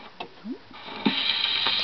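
A gramophone record starts to play with a crackling hiss.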